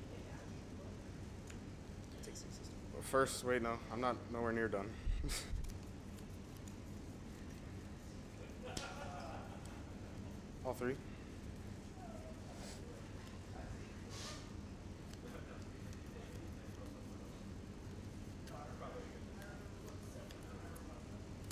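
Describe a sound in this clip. Playing cards slide and tap softly on a table mat.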